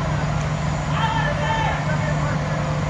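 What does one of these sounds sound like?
Men shout to each other across an open field in the distance.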